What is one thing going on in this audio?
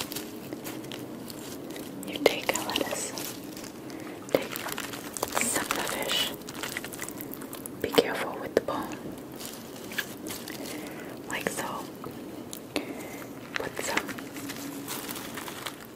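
Lettuce leaves crinkle and rustle close up.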